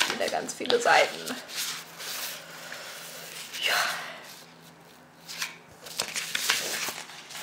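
Paper pages rustle and flip as they are turned by hand.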